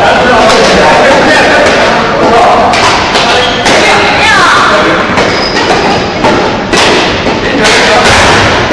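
Badminton rackets strike shuttlecocks in a large echoing hall.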